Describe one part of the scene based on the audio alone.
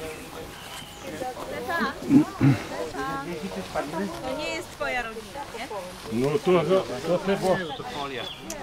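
A woman speaks with animation outdoors, close by.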